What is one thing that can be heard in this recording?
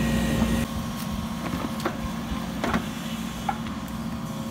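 An excavator bucket scrapes and knocks against soil and stones.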